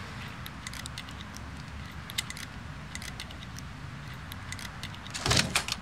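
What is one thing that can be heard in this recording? Small metal clicks tick as a lock is picked.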